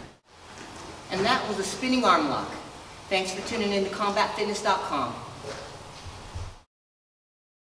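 A man speaks calmly in a room with echo.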